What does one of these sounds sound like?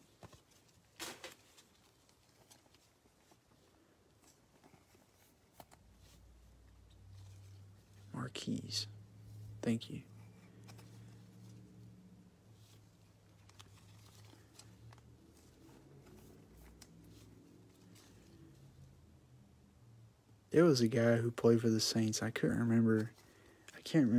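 Plastic card sleeves rustle and click as they are handled.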